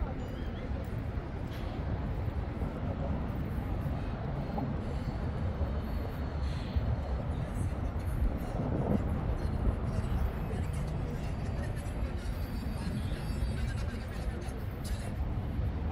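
A low, steady rumble of traffic passes over a road bridge overhead.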